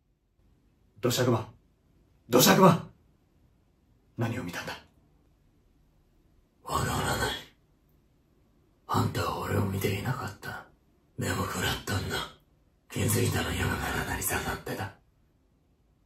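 A young man speaks in short bursts, close by, with pauses between phrases.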